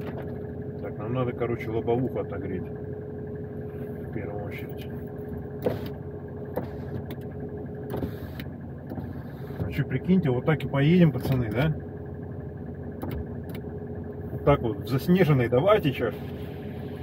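A man speaks calmly nearby inside a car.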